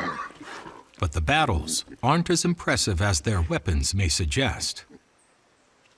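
Wild pigs squeal and grunt loudly as they fight.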